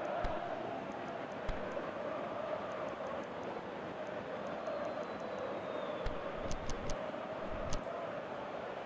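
Short electronic clicks sound as menu options are picked.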